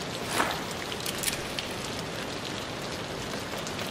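A bullet is loaded into a revolver with a metallic click.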